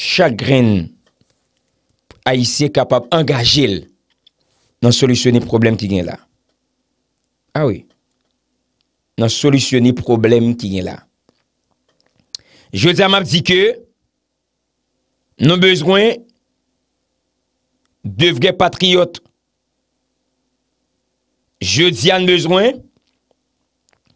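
A young man speaks close to a microphone in short, calm phrases with pauses between them.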